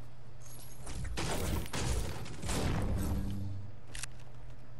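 A pickaxe strikes wood repeatedly with hard knocks.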